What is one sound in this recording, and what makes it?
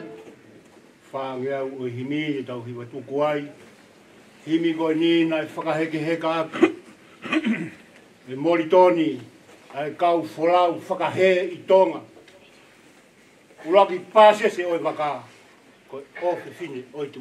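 A man speaks calmly into a microphone, reading out.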